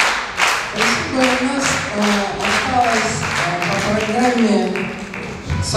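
A group of men and women sing together.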